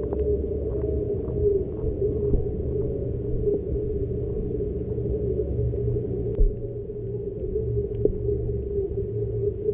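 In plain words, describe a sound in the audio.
Seawater surges and rumbles, heard from underwater.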